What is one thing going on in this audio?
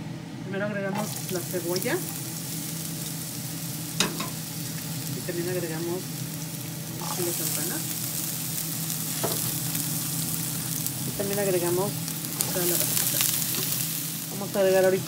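Chopped vegetables tumble into a frying pan with soft thuds.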